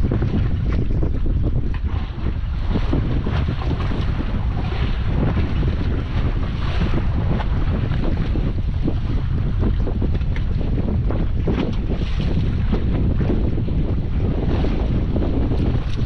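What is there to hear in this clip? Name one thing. Wind blows hard across open water outdoors.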